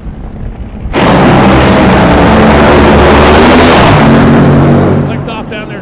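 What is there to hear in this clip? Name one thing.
Dragster engines roar to full power with a deafening blast.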